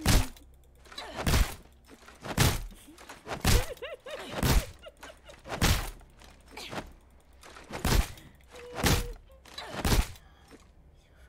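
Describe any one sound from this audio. Heavy footsteps thud at an even pace.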